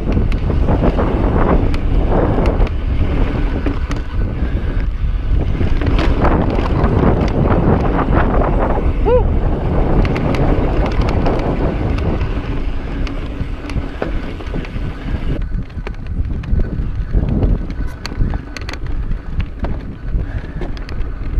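Bicycle tyres rattle and crunch over rock and gravel.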